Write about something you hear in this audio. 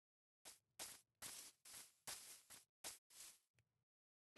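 Footsteps crunch softly on grass at a steady walking pace.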